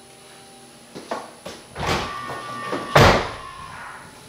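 A parked car clunks loudly several times as charging begins.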